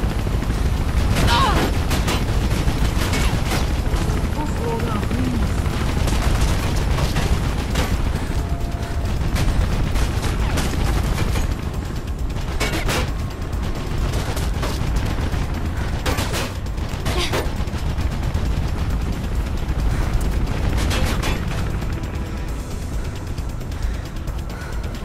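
Footsteps thud quickly on a hard roof.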